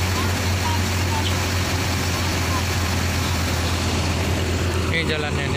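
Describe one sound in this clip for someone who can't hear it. A truck engine runs with a steady low rumble.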